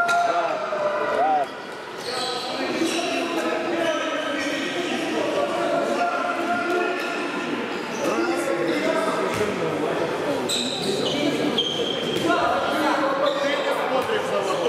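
A handball bounces on a sports hall floor.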